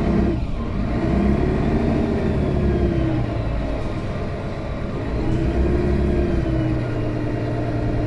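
A bus engine hums and whines steadily while driving.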